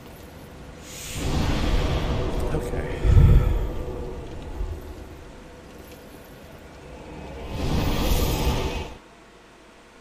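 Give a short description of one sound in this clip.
A deep whooshing rush swells and cuts off.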